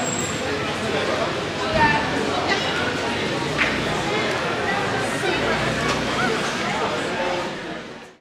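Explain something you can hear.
A crowd chatters busily outdoors.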